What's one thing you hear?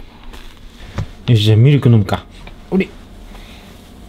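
A young man speaks softly up close.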